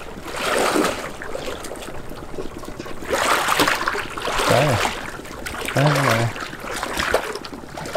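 Water splashes as a man wades through it.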